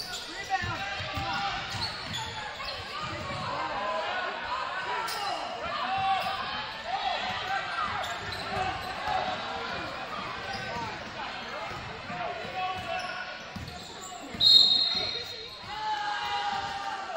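A crowd chatters and calls out throughout in an echoing gym.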